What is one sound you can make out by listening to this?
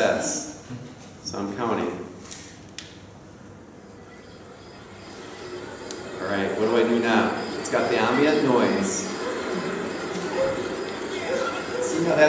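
A middle-aged man speaks calmly to an audience in a room with a slight echo.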